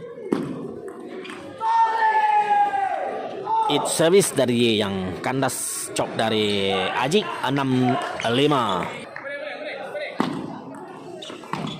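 Paddles strike a table tennis ball back and forth.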